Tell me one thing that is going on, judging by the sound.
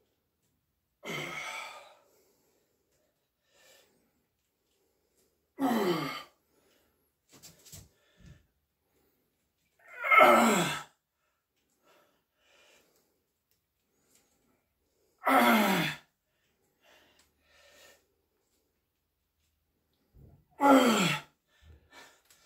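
A middle-aged man groans loudly with strain, again and again.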